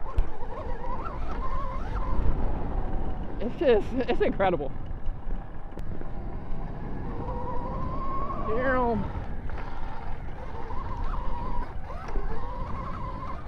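An electric motor whines steadily, rising and falling in pitch.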